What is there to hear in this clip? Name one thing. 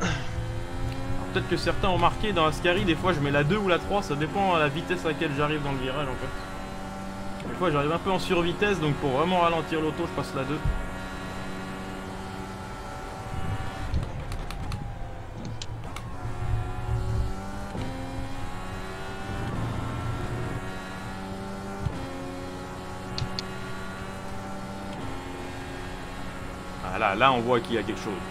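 A race car engine whines steadily, rising and falling in pitch as it shifts gears.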